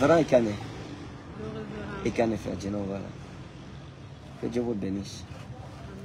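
A man talks and laughs softly, close by.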